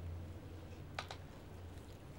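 A small metal object clicks down onto a hard surface.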